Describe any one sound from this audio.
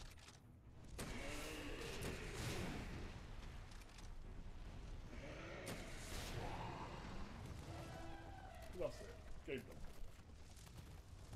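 Gunfire and explosions boom loudly in a game.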